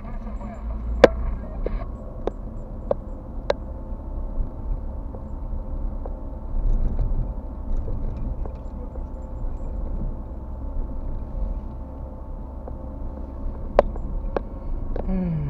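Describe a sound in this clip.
Things rattle and knock inside a moving car.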